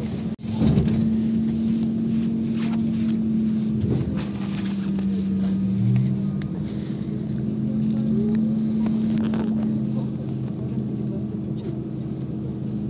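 A car engine revs loudly close by.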